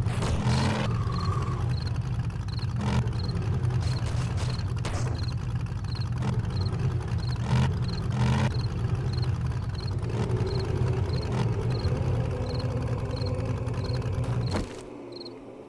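A truck's body bumps and knocks over uneven ground.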